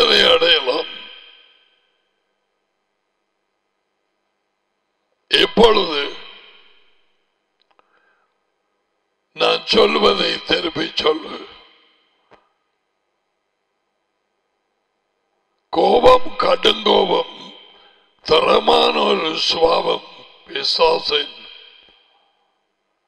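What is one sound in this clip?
An older man speaks emphatically into a close microphone, in bursts with pauses.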